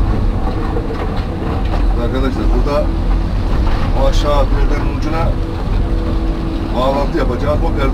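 Excavator hydraulics whine in short rising bursts.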